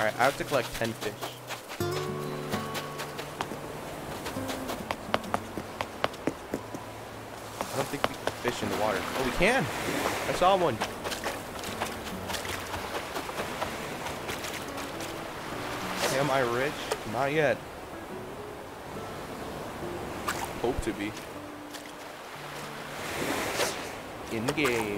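Waves lap gently at a shore.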